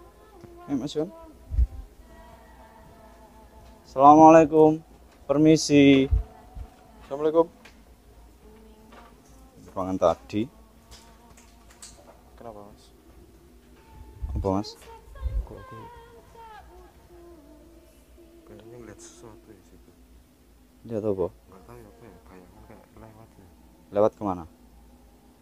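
Young men talk nearby, sometimes loudly.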